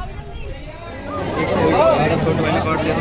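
A large crowd of men and women chatters loudly close by.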